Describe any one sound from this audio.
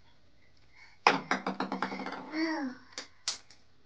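A young boy talks and laughs excitedly nearby.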